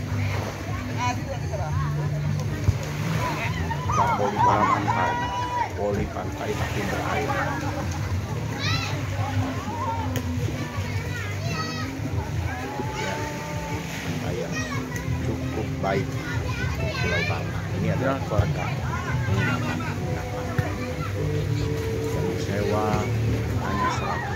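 Young men and women shout and call out at a distance outdoors.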